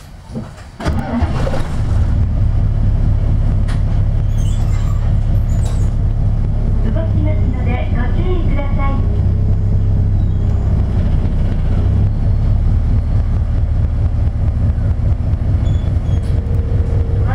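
A car engine idles with a steady low rumble.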